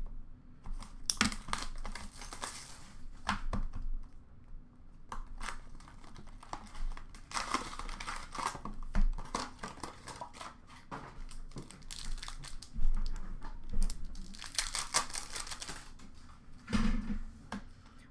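Cardboard boxes tap and scrape as they are handled.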